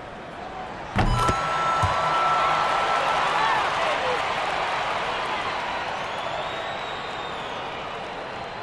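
A crowd cheers loudly after a shot.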